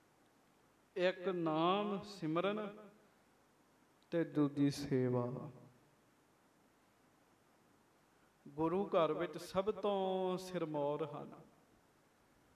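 A young man sings slowly into a microphone, in phrases with pauses between them.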